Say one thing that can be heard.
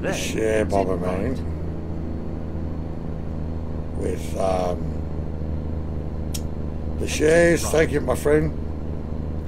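A middle-aged man talks casually into a microphone in short bursts.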